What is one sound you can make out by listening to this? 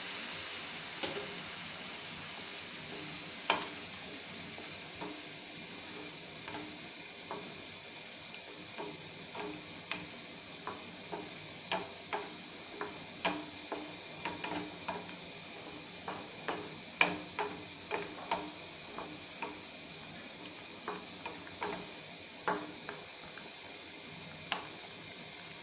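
A wooden spoon knocks and scrapes against a pan.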